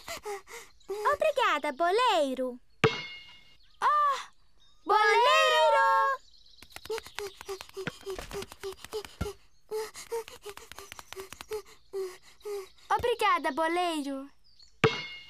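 A young child cries loudly.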